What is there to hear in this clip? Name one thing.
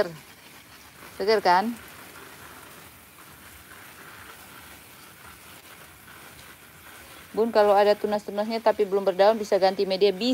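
A spray bottle hisses as it mists water in short bursts.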